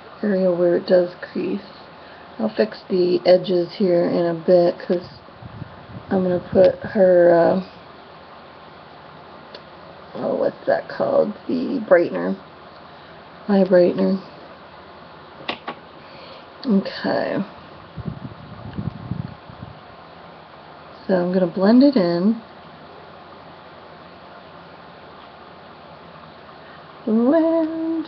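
A woman talks calmly and close to a microphone, in short bursts with pauses.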